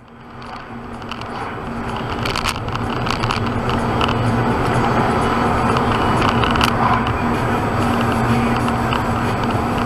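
Tyres roar on a tarmac road, growing louder as the car speeds up.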